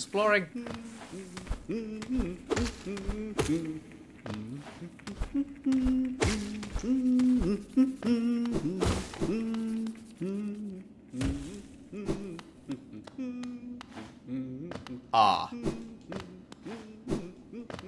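Short soft thuds and whooshes come as a small character jumps and lands.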